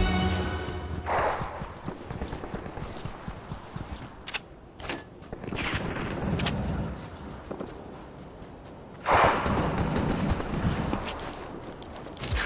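Footsteps patter quickly on sand in a game.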